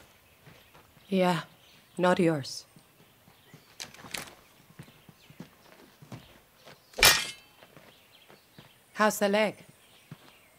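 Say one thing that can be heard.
A young woman speaks tensely, close by.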